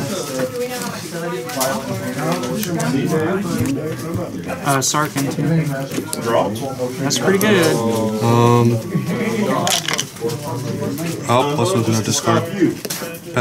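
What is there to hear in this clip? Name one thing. Cards shuffle softly in hands.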